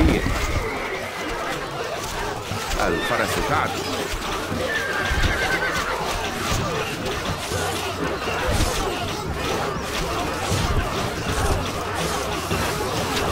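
An army of soldiers marches with clanking armour and shuffling feet.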